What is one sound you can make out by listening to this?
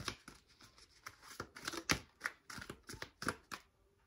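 A card is laid softly on a tablecloth.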